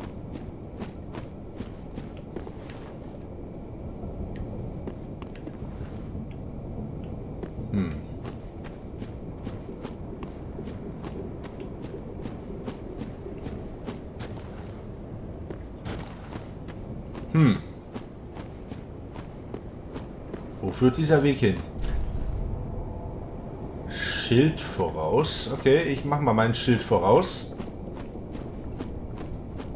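Armored footsteps run quickly over rough ground.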